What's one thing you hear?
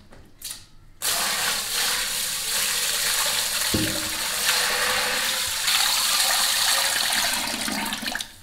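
Water pours steadily into a deep jar with a loud rushing splash.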